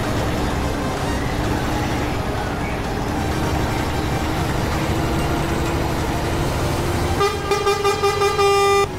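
A bus engine drones steadily as the bus drives along a road.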